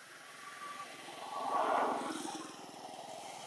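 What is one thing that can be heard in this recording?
A baby monkey squeals softly nearby.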